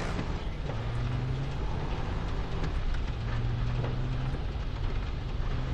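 An engine rumbles steadily as a vehicle drives.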